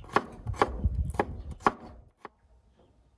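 A knife chops through beetroot on a wooden board with quick knocks.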